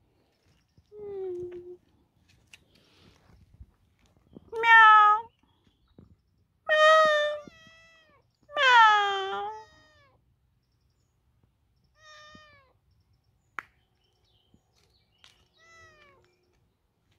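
A kitten meows loudly and repeatedly, close by.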